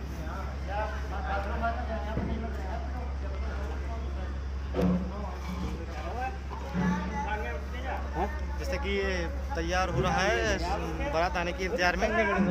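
Several people talk nearby in a busy, lively crowd.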